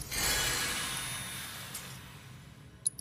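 A magic spell chimes and shimmers.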